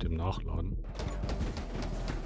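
Video game gunfire and small blasts crackle rapidly.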